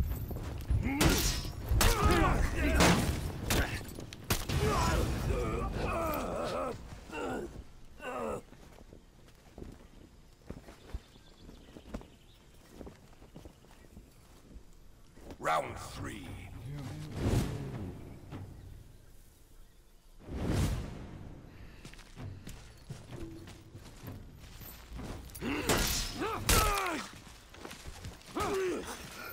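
Warriors grunt and shout as they fight.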